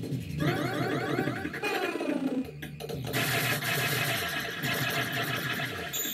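Electronic arcade game sounds chirp and warble rapidly.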